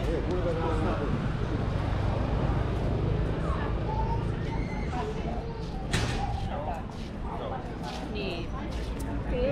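Men and women chat nearby in a lively outdoor bustle.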